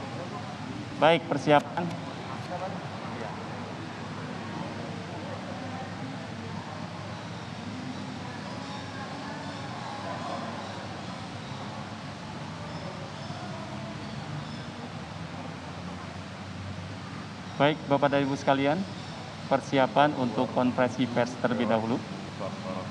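A man speaks loudly over a loudspeaker outdoors.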